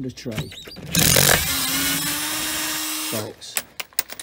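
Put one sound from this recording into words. A cordless drill whirs loudly.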